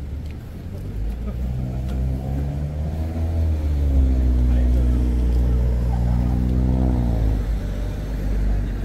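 A car engine hums loudly as it passes close by, then fades.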